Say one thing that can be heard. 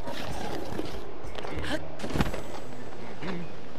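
Footsteps scuff and crunch on rocky ground.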